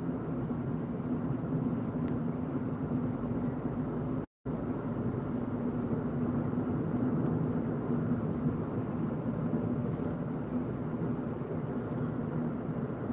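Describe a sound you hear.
Tyres roar steadily on asphalt.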